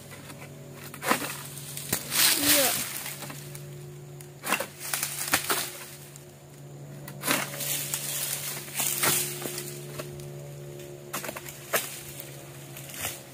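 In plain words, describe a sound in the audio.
Palm fronds rustle in a gusty breeze.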